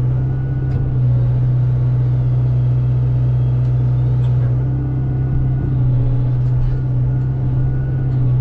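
A diesel engine hums loudly and steadily close by.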